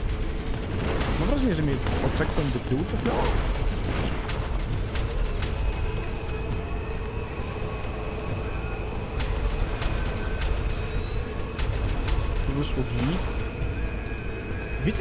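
A vehicle engine roars steadily at high speed.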